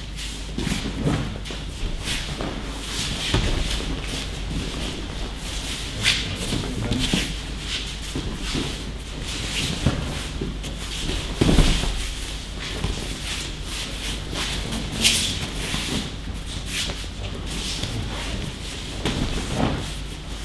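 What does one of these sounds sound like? Bodies thud onto a padded mat as people are thrown, in a large echoing hall.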